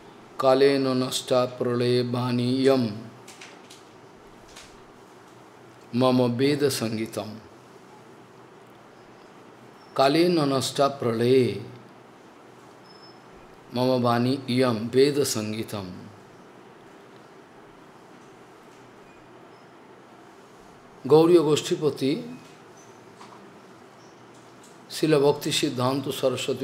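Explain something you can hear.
An elderly man speaks slowly and calmly into a microphone, in bursts with long pauses.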